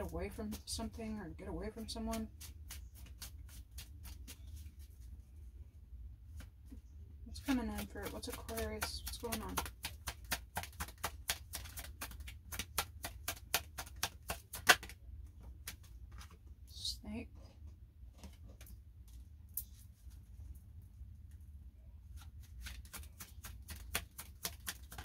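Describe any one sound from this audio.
Cards are shuffled, with quick soft flicking taps.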